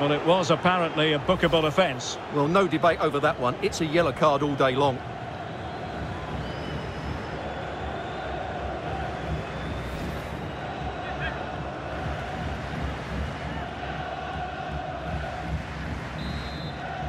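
A stadium crowd roars steadily in the distance.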